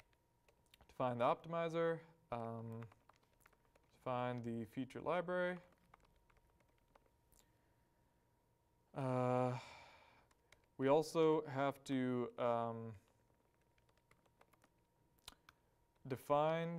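A young man speaks calmly and clearly into a microphone, pausing between phrases.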